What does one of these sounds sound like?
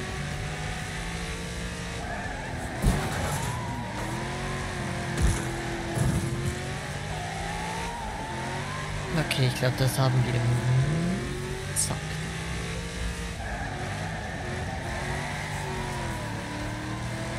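A car engine roars and revs throughout.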